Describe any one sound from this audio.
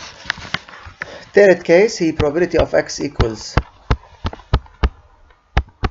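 A stylus taps and scratches while writing.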